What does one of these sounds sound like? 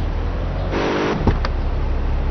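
A car door opens with a clunk.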